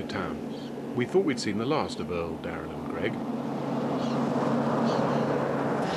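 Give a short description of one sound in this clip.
A car engine roars as a vehicle speeds along a dirt road.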